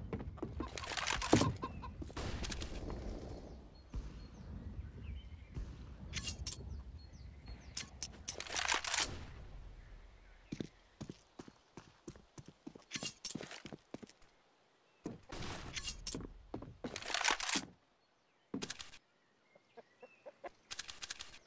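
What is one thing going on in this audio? A rifle scope clicks as it zooms in.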